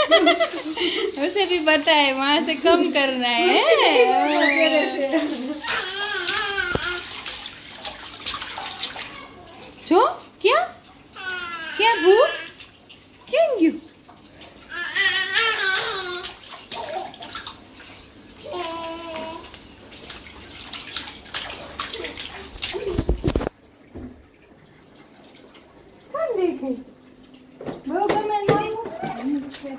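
A young woman speaks playfully and sings to a baby, close by.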